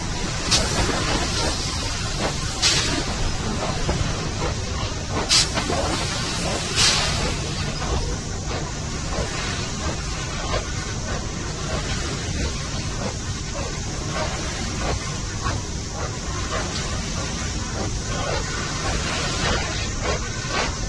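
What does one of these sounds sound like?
A rail cart rumbles steadily along its track.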